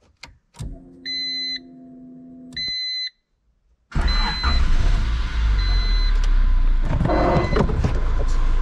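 A warning chime beeps in a steady tone.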